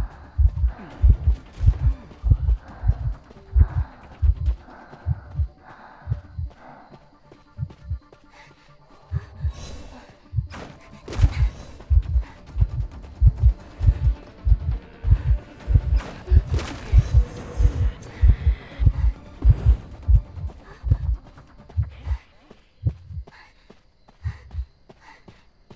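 Footsteps thud steadily on the ground.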